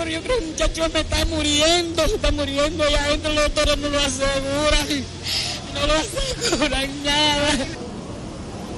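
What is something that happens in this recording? An elderly woman speaks up close in a shaky, tearful voice.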